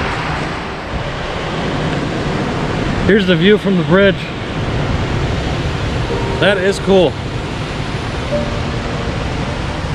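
Water rushes and churns steadily over a low weir.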